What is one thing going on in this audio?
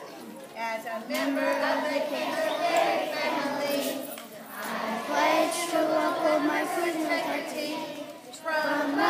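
A woman speaks loudly and clearly to a group outdoors.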